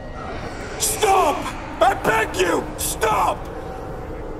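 A man cries out and pleads in distress.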